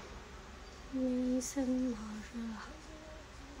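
A young woman speaks softly, close to the microphone.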